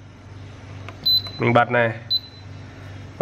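An electronic control board beeps twice in short high tones.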